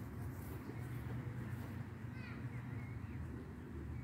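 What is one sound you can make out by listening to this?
Footsteps pass softly over grass.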